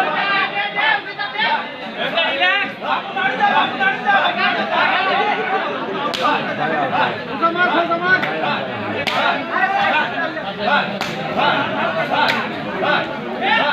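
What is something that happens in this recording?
A crowd of onlookers shouts and cheers outdoors.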